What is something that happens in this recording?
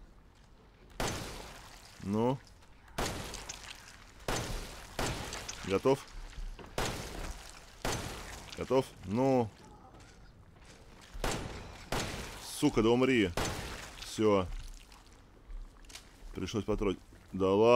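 A pistol fires sharp, loud shots again and again.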